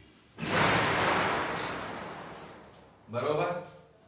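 A cloth rubs and swishes across a chalkboard.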